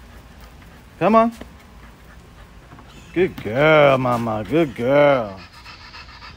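A dog barks.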